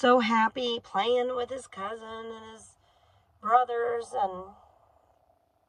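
A woman speaks close by, in a calm, chatty way.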